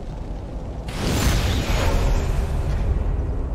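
A deep rushing whoosh of flame swells up and fades.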